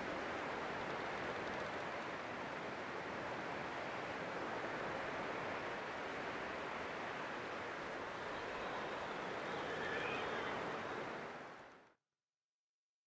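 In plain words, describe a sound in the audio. A snowstorm wind howls steadily outdoors.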